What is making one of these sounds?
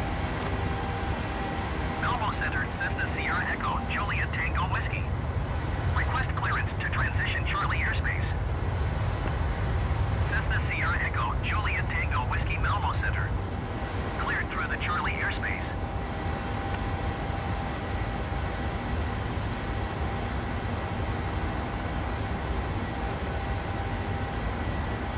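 Jet engines drone with a steady, low roar.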